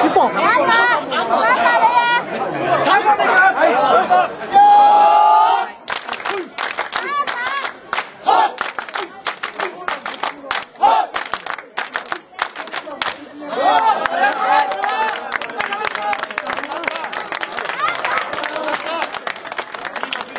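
A crowd of men chant and shout loudly together outdoors.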